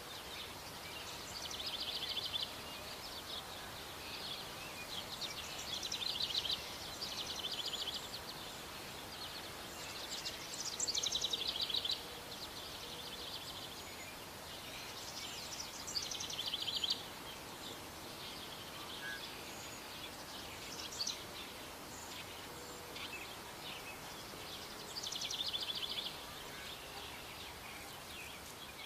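A hedgehog snuffles and sniffs in the grass.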